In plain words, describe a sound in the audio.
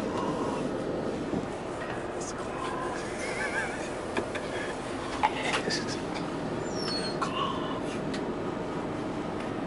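A bus engine hums steadily while driving along a street.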